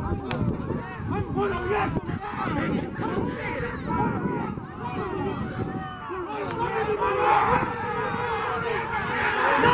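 A crowd of men shouts and cheers excitedly outdoors.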